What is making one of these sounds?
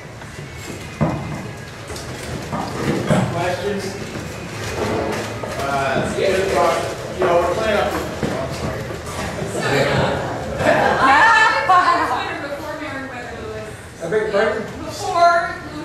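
A middle-aged man speaks with animation to a small group.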